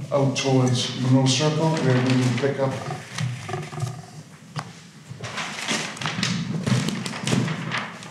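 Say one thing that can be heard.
Large sheets of paper rustle and crinkle as they are flipped.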